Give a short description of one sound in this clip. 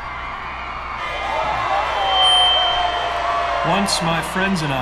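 A large crowd cheers and roars in a vast arena.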